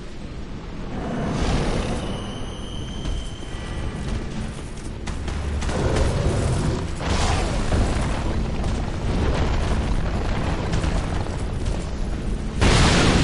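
A huge beast roars and stomps heavily.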